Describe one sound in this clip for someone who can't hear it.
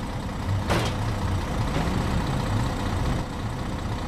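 An SUV engine revs as it climbs up a metal ramp.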